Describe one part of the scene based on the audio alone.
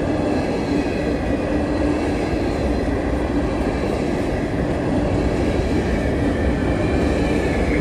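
Steel wheels squeal and clatter on the rails.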